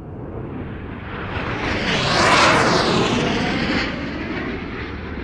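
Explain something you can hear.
A jet rushes past with a loud, rising and falling whoosh.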